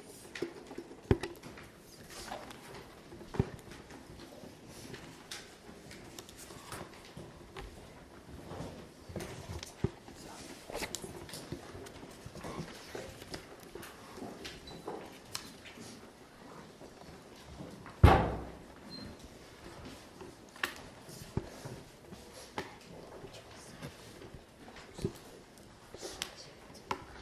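Children murmur and chatter quietly nearby.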